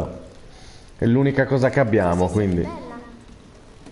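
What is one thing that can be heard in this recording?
A girl speaks softly.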